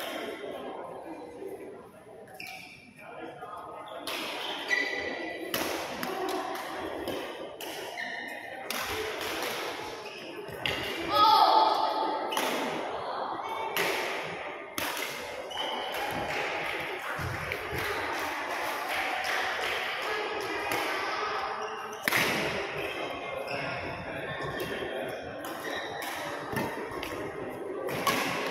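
Badminton rackets hit a shuttlecock with sharp pops, again and again.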